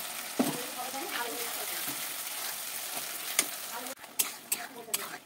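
Thick sauce sizzles in a pan.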